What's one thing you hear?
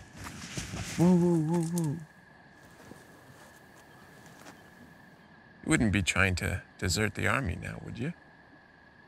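Another man answers in a low voice.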